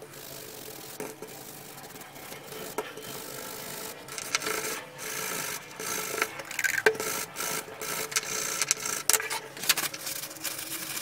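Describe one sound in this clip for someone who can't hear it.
A stiff brush scrubs with a rough, scratchy rustle.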